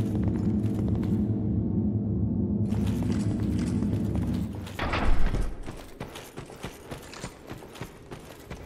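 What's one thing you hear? Heavy footsteps thud steadily on stone.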